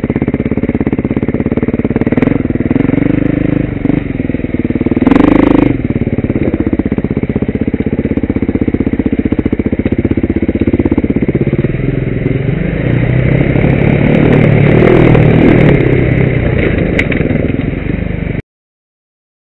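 A motorbike engine revs loudly and steadily close by.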